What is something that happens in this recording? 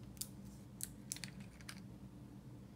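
Small plastic parts click in a woman's hands.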